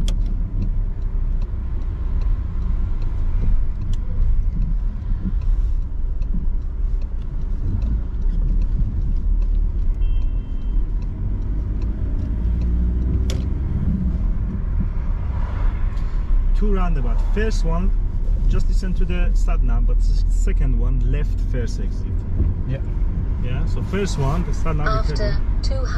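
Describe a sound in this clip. A car engine hums steadily with road rumble inside the car.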